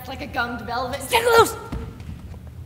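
A young woman calls out with animation in a large echoing hall.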